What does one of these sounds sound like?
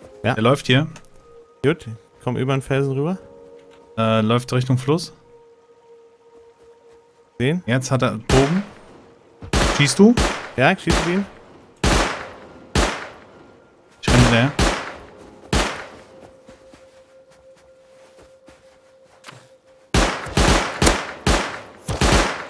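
Footsteps shuffle across soft sand.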